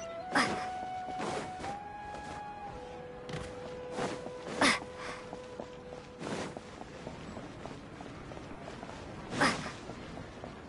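Footsteps patter on stone as a game character runs.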